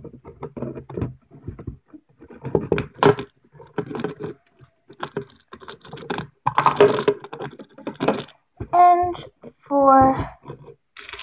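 A young girl talks with animation, close to the microphone.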